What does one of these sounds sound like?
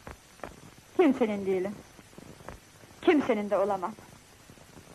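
A woman speaks with feeling, close by.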